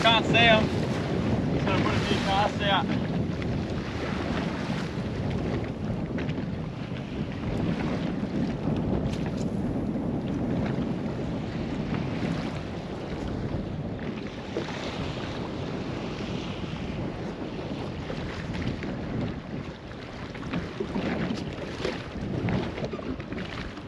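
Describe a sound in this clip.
A boat engine drones steadily.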